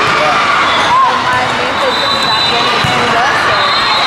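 A volleyball is struck with a thud.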